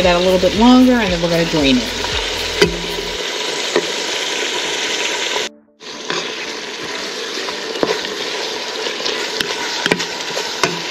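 Minced meat sizzles steadily in a hot pan.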